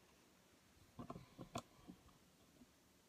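A young person speaks softly and close up.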